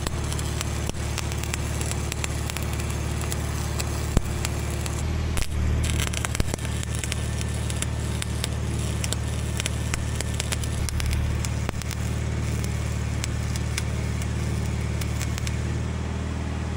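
An arc welder crackles and sizzles steadily up close.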